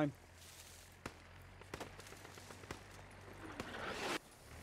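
Footsteps tread slowly over grass and dirt.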